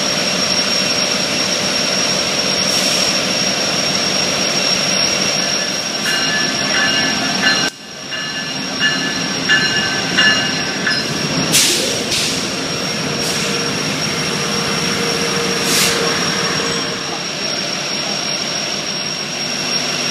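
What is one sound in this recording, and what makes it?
A diesel locomotive engine rumbles and idles steadily nearby.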